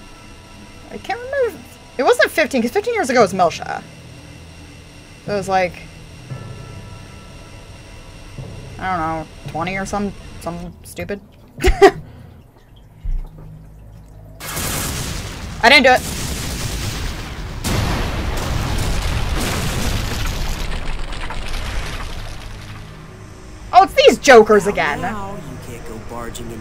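A young woman talks and laughs close to a microphone.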